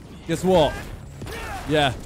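A crackling electric blast bursts out in a game.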